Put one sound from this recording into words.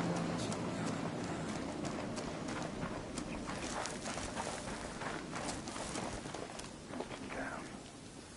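Footsteps crunch and rustle through dry brush.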